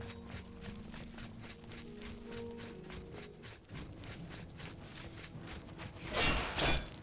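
Footsteps crunch steadily on a stone path.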